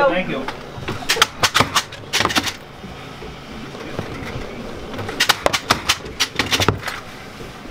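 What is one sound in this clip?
Hard candy taps and knocks against a table.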